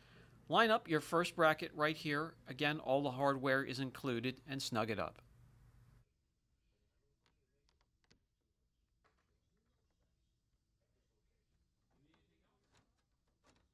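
Fingers tap and click on a plastic grille.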